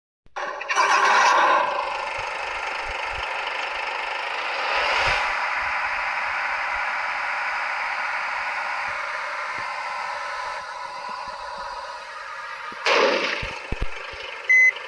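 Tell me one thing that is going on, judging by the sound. A bus engine drones as the bus pulls away.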